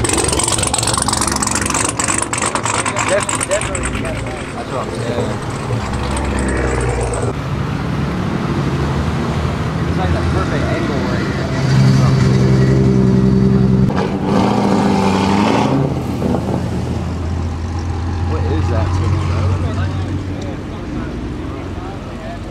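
Car engines rumble and rev loudly close by.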